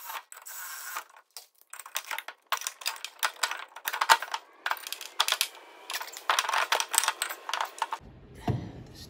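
A ratchet wrench clicks rapidly.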